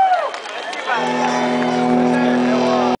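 An electric guitar rings out a held chord through loudspeakers.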